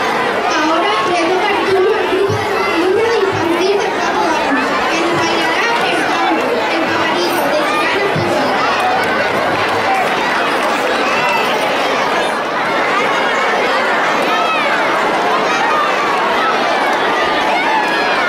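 A large crowd of children chatters and shouts outdoors.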